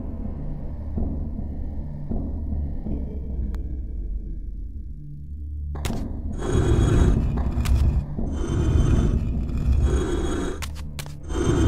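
A glowing blade hums steadily.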